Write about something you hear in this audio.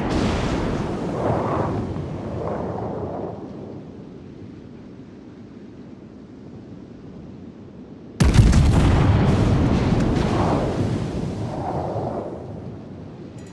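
Shells splash heavily into the water close by.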